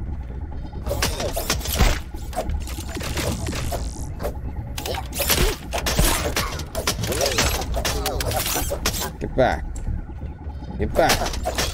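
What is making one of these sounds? Small robots fire sharp electronic blasts in quick bursts.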